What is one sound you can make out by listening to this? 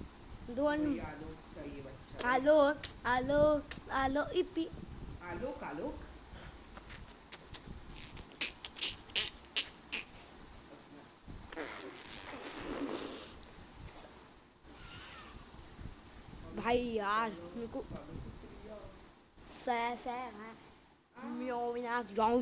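A boy talks animatedly, close to a microphone.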